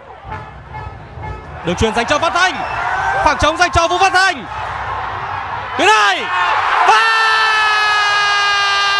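A large crowd cheers and chants in a stadium.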